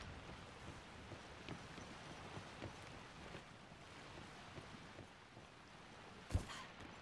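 Footsteps thud quickly across a hard floor.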